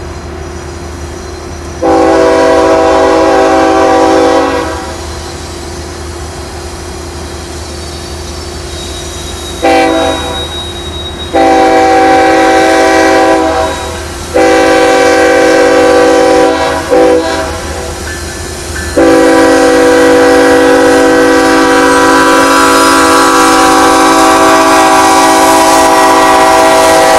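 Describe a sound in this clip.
A locomotive engine rumbles as a train approaches.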